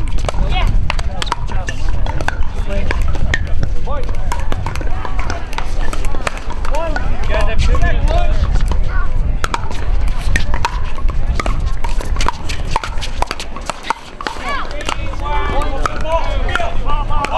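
Paddles pop sharply against a plastic ball.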